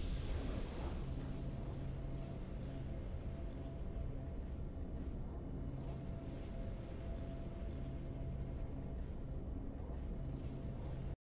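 Triumphant game music plays with a steady repeating pattern.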